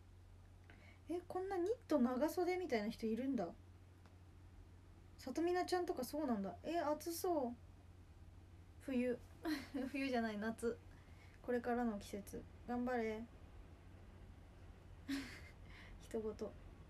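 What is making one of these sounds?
A young woman speaks casually and close by, in short bursts with pauses.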